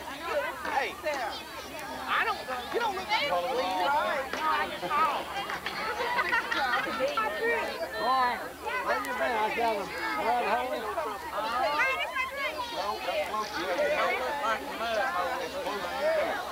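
Many children chatter and shout excitedly all around.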